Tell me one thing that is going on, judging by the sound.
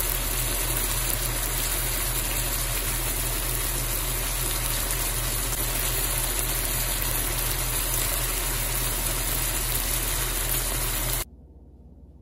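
Meat sizzles and bubbles in a hot pan.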